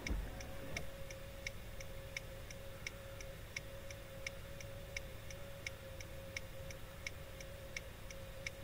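A car engine idles steadily, heard from inside the car.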